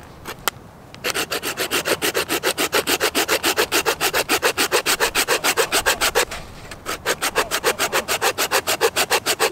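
A knife scrapes quickly and rhythmically along a wooden stick.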